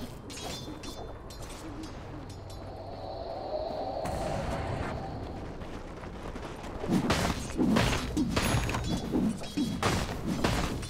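Magical blasts and weapon strikes clash in a video game battle.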